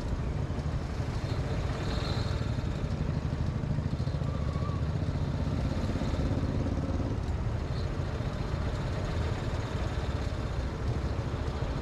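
Traffic passes through a busy intersection outdoors.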